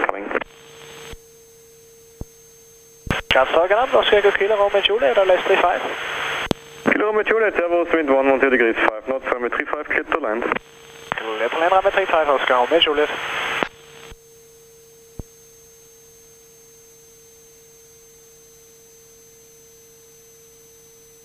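A turbo-diesel single-engine light aircraft drones in flight.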